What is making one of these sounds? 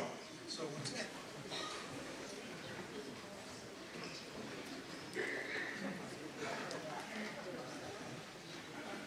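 An orchestra plays music in a large hall.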